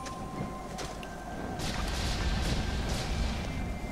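A burst of fire whooshes and crackles.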